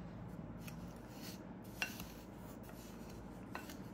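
A wooden spatula scrapes against a glass bowl.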